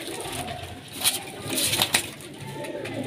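Pigeon wings flap briefly.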